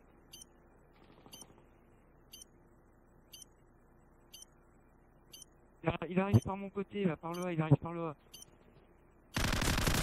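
A bomb timer beeps sharply once a second.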